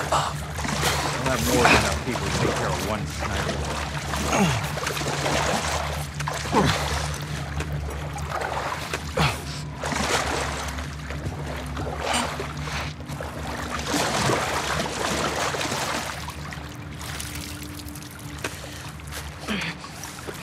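Water splashes and sloshes as someone wades through it.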